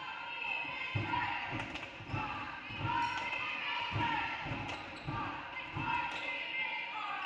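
A basketball bounces on a wooden floor in steady dribbles.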